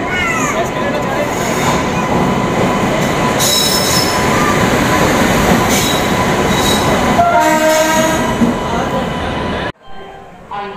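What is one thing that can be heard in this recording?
A locomotive rumbles past close by, growing louder.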